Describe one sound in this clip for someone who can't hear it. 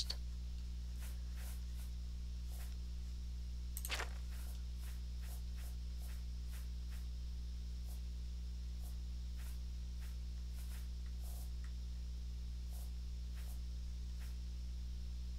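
Soft clicks tick as a game menu scrolls.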